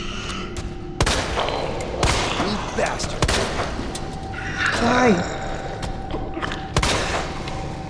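A pistol fires several shots.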